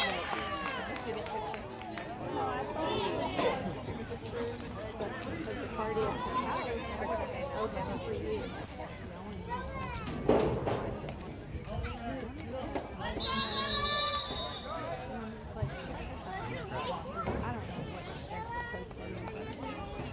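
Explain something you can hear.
A crowd of spectators and young players chatters and calls out outdoors.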